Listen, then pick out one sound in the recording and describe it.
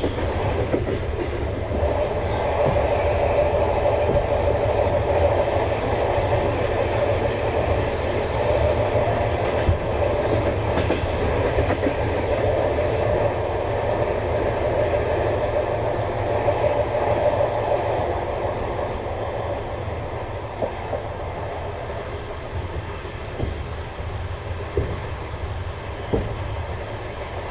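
Train wheels click and knock over rail joints.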